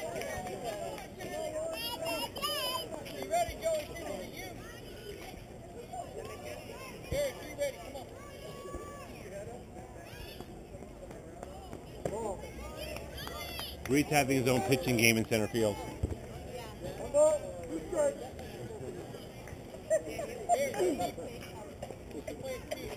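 People in a crowd of spectators talk and call out outdoors.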